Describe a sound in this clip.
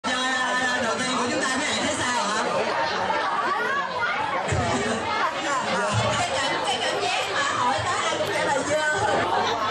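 A young man sings into a microphone over a loudspeaker.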